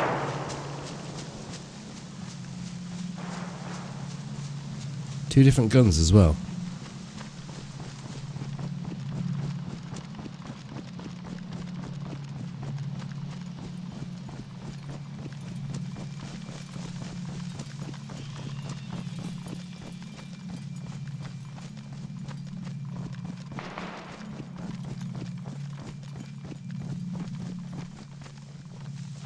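Footsteps swish steadily through tall grass and undergrowth.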